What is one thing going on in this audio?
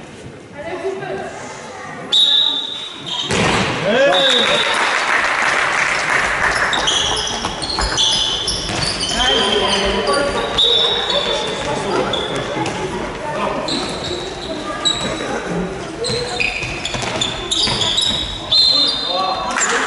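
Young players shout and call out across a large echoing hall.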